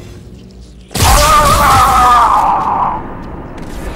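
A plasma grenade explodes with a loud crackling blast.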